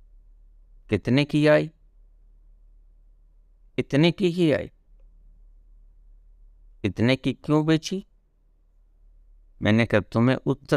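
An elderly man speaks calmly and close by in short phrases with pauses.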